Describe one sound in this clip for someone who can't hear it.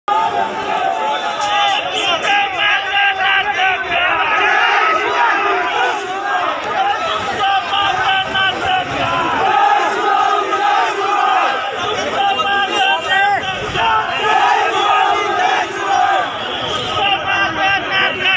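Men shout excitedly over one another nearby.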